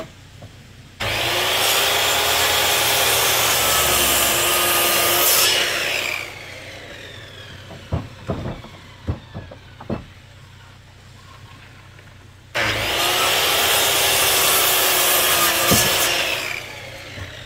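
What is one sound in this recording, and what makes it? A circular saw cuts through lumber.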